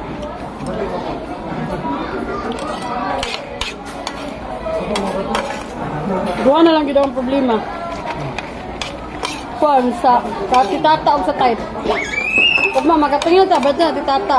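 A metal fork and spoon clink and scrape against a plate.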